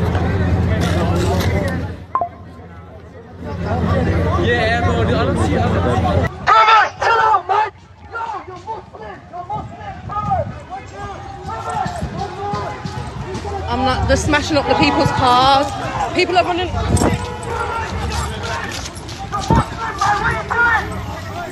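A crowd of men shouts and yells outdoors.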